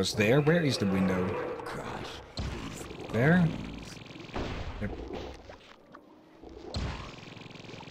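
A fireball bursts with a loud whoosh.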